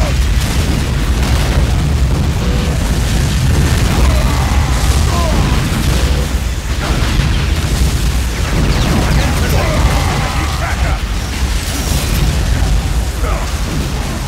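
Futuristic guns fire in rapid bursts.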